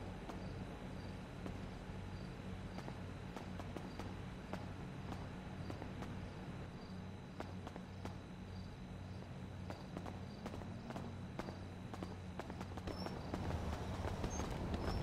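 Footsteps tap on a hard tile floor.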